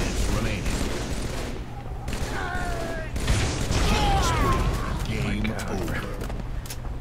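Gunfire bursts loudly and rapidly.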